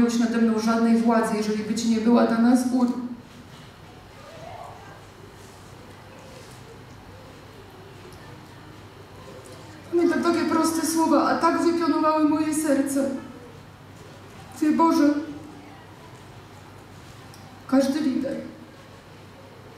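A woman sings into a microphone, her voice amplified in a large hall.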